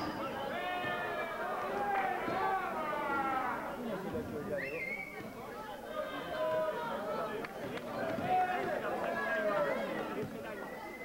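Several men talk and call out nearby among a small crowd.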